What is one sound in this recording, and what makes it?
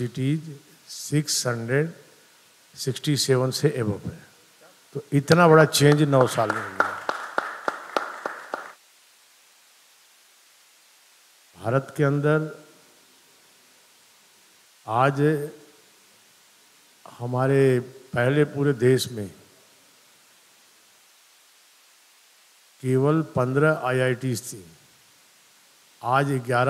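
An older man speaks calmly and deliberately into a microphone, with pauses between phrases.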